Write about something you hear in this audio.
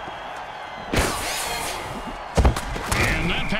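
Armoured players crash together in a heavy tackle.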